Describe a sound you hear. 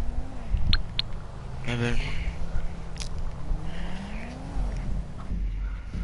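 A motorcycle engine hums and revs.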